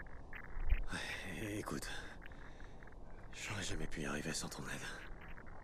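A man speaks quietly in a low voice.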